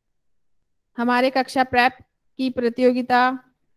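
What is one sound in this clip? A woman speaks calmly into a microphone over an online call.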